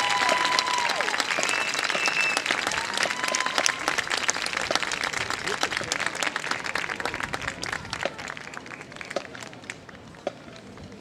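A marching band plays outdoors, then fades away.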